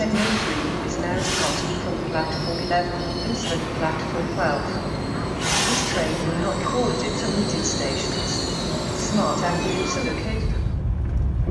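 A crowd chatters nearby in an echoing station hall.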